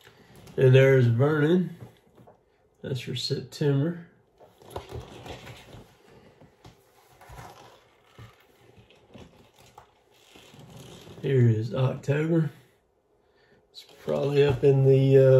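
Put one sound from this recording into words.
Paper rustles as a large calendar is handled.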